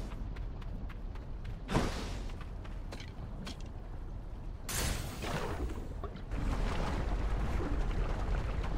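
Lava bubbles and rumbles low and steadily.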